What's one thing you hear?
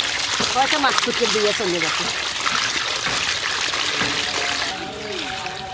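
Water pours and splashes onto wet shrimp.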